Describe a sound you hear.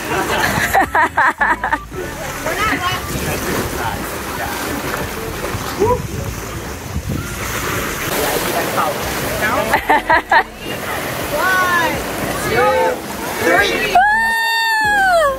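Waves crash and wash against rocks below.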